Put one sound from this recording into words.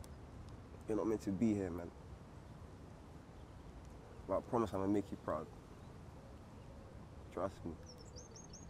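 A young man speaks quietly and haltingly, close by.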